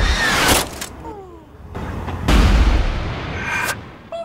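A man lands on the ground with a thud.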